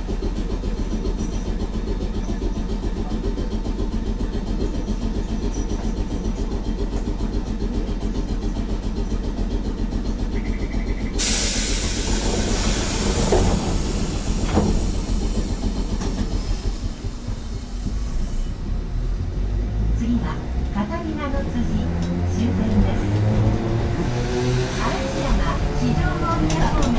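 A train rumbles along the tracks with a steady low drone.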